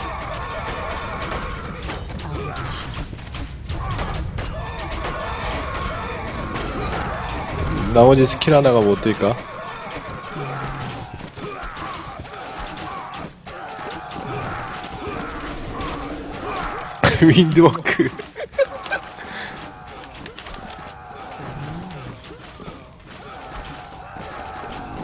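Game battle sounds clash and clatter steadily.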